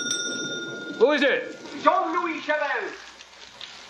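A man speaks tensely close by.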